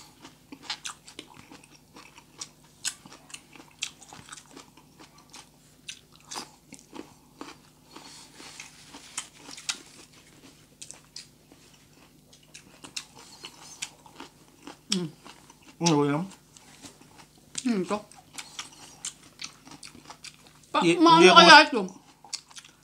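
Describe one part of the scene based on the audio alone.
A woman chews crunchy broccoli close to a microphone.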